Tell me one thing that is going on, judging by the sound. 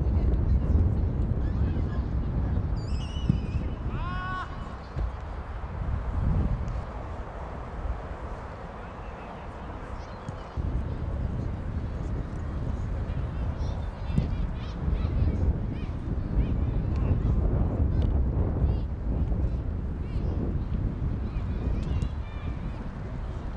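A crowd of spectators murmurs and chatters in the distance.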